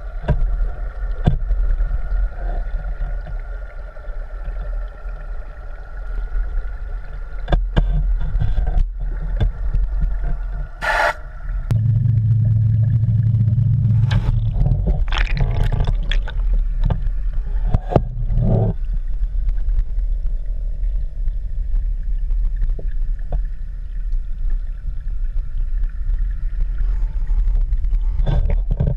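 Water rumbles dully and steadily around an underwater microphone.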